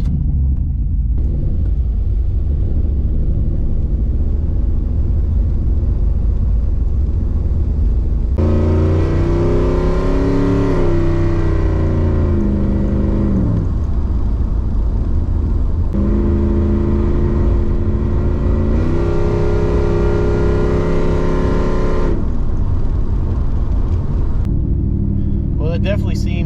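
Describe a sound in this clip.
A car engine rumbles steadily, heard from inside the car.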